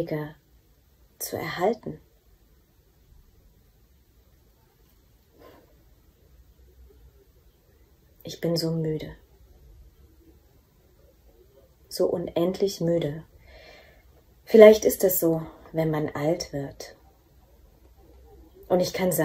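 A young woman reads aloud close to a microphone, in short phrases with pauses.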